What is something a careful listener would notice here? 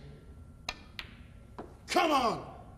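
Snooker balls knock together with a click.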